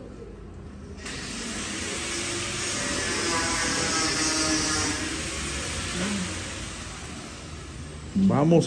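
Wheelchair wheels roll over a hard floor.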